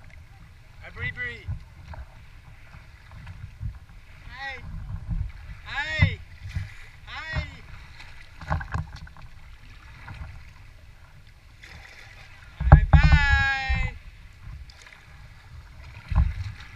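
Water laps and sloshes against the hull of a kayak.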